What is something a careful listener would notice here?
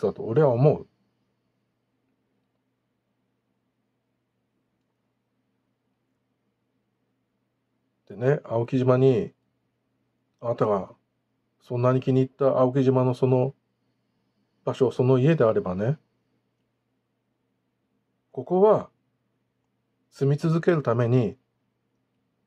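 A middle-aged man speaks calmly and close up, in short phrases with long pauses.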